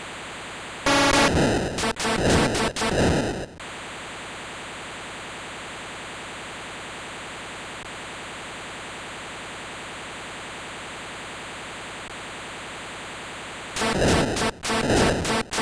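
Electronic game sound effects buzz and crackle in short bursts.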